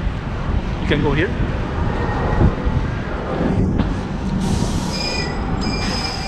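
A tram rolls past nearby.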